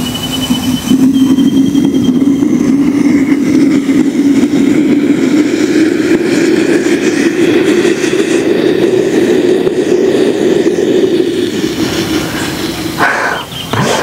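A firework fountain hisses and roars steadily as it burns.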